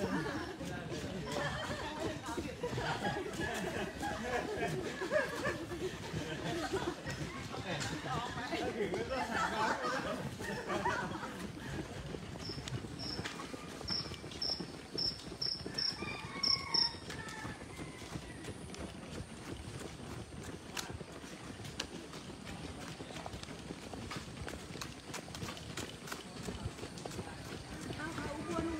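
Footsteps of a group of runners patter on pavement.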